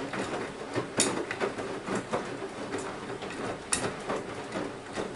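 Water sloshes as laundry tumbles in a washing machine drum.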